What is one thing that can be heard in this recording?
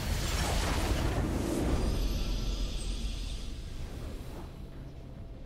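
A triumphant fanfare swells and then fades.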